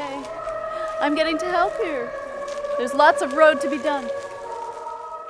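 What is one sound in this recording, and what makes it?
A woman speaks cheerfully close by.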